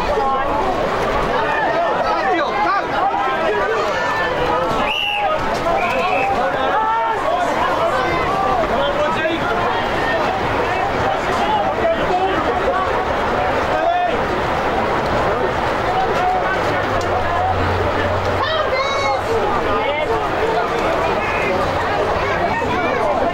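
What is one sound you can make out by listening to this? Young players and spectators shout and call out outdoors across a field.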